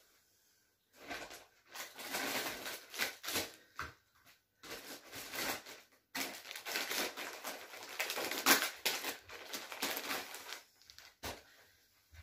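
Cloth rustles and wipes against a surface.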